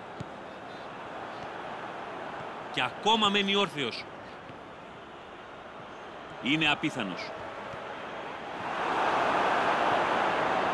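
A large crowd murmurs steadily in a stadium and swells into a roar.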